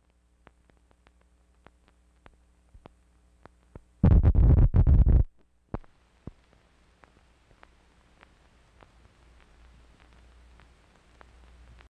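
Old film crackles with soft, evenly spaced pops.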